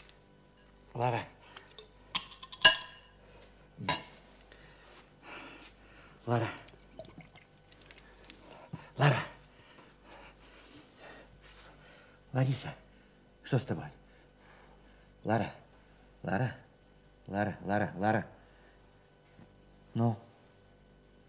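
A middle-aged man speaks quietly in short, broken phrases, close by.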